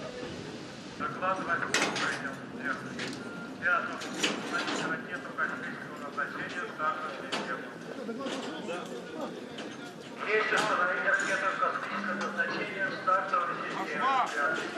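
A crowd of men and women talk nearby outdoors.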